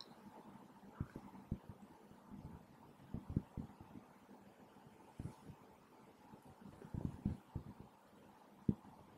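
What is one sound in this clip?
A drawing compass taps and clicks against paper.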